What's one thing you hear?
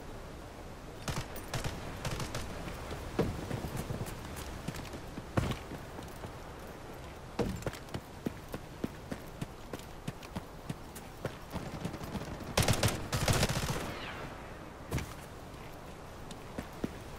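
Footsteps crunch quickly over gravel and dirt.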